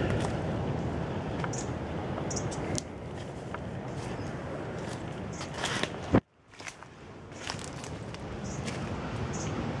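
Leafy branches brush and rustle against a passing walker.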